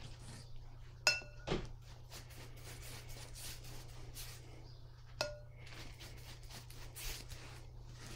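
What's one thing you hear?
A brush taps against a glass jar of water.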